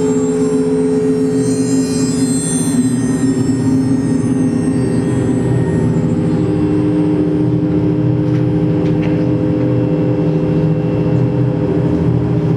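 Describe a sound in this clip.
Dense electronic drones and tones hum steadily from a synthesizer.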